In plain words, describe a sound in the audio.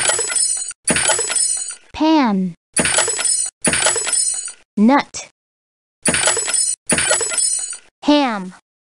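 Wooden crates crack and splinter apart.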